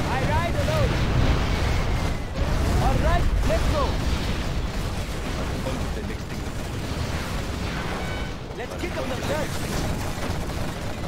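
Explosions boom and rumble heavily.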